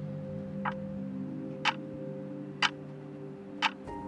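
A clock ticks steadily, once each second.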